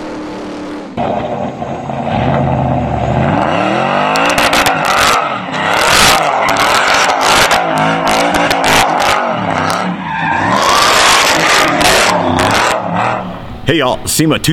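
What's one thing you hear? An engine revs hard and roars.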